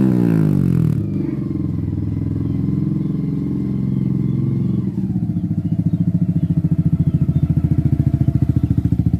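A motorcycle rides by close, its engine growling.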